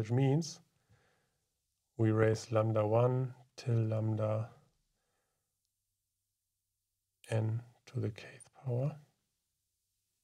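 A man speaks calmly into a close microphone, explaining.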